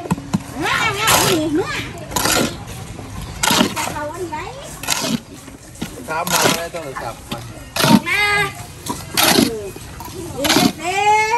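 Concrete blocks knock and scrape as they are set in place.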